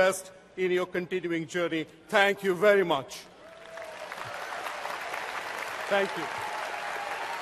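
An elderly man speaks through a microphone in a large echoing hall.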